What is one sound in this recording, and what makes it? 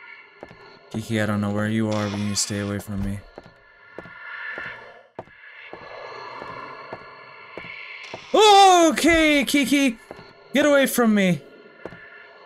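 A young man speaks and exclaims into a close microphone with animation.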